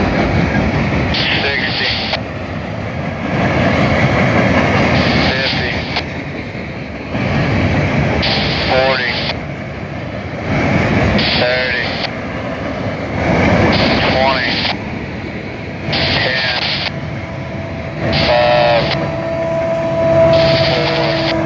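A freight train rumbles past close by on the tracks.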